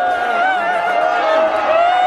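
Two young men laugh close by.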